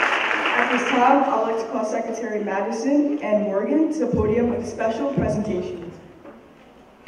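A young woman speaks calmly through a microphone and loudspeakers in a large hall.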